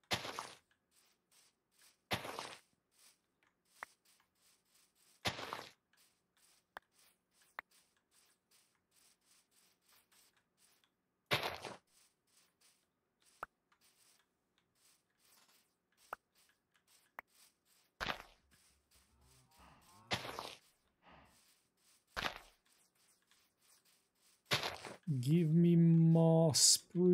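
Footsteps rustle softly on grass.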